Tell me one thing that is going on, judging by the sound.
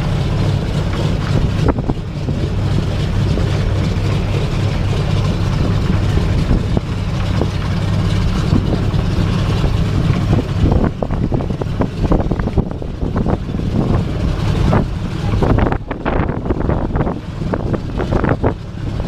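The radial engines of a propeller plane rumble loudly nearby.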